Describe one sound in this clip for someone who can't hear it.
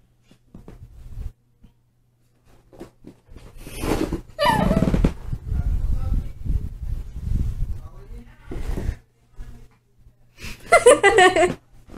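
A kitten and a small dog scuffle playfully on a carpet.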